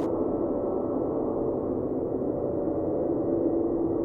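A huge monster growls deeply.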